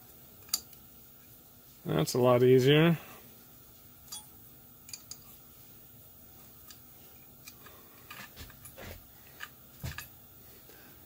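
Small metal tools click and tap together.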